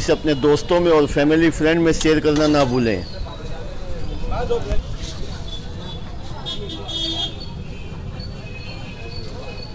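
A metal spoon scrapes and taps against a bowl.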